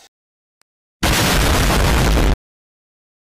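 A huge explosion roars with a loud blast.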